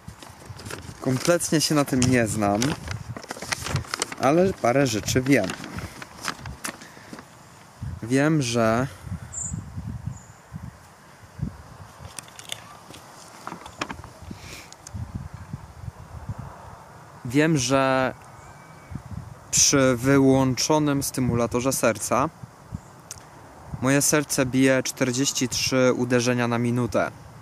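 A young man speaks calmly and close by, outdoors.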